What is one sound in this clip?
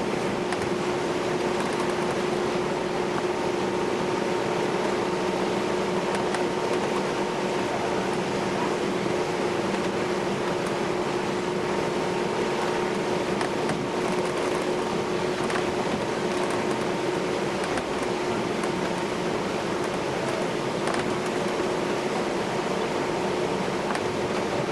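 A ship's engine drones steadily with a low hum.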